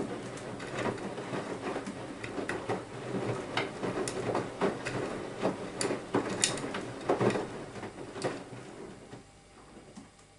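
Water sloshes and splashes inside a washing machine drum as laundry tumbles.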